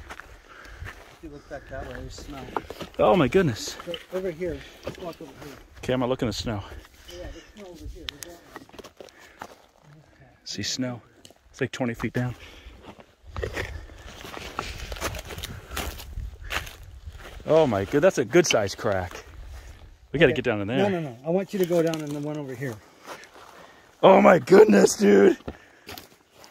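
A middle-aged man talks calmly close by, outdoors.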